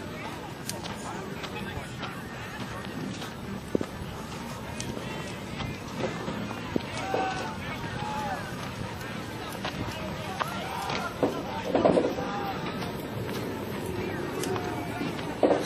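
A large fire crackles and pops in the open air.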